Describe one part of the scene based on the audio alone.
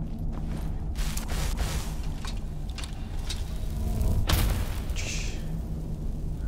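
A magic spell crackles and hums.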